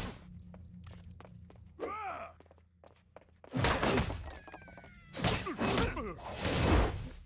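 Magic blasts crackle and whoosh as a staff fires.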